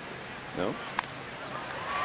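A bat cracks against a baseball.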